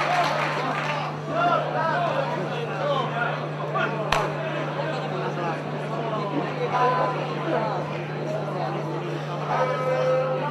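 People in an audience murmur and chatter.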